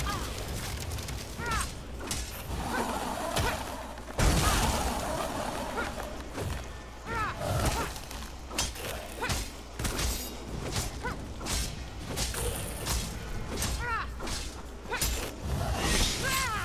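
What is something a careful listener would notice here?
A bowstring twangs again and again as arrows are fired.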